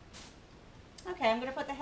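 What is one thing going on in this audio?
A middle-aged woman speaks nearby.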